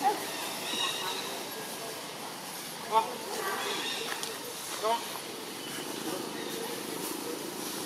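Leafy branches rustle as a young monkey climbs and swings.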